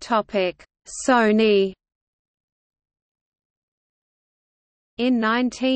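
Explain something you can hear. A middle-aged man speaks close by.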